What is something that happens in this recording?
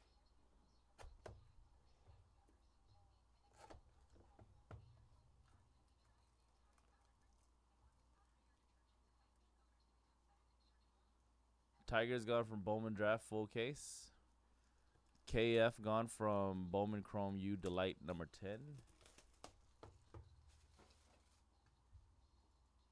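A box is handled and set down with soft knocks and rustles.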